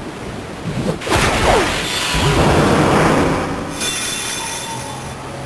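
Sparkling game sound effects ring out in a burst.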